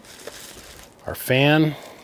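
Plastic bubble wrap crinkles.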